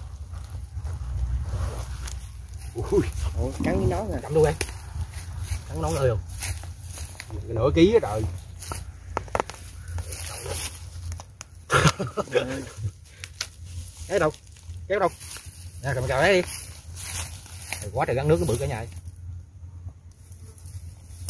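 Dry leaves and twigs rustle and crackle.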